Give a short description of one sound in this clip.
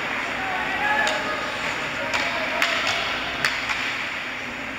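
Hockey sticks click against the puck.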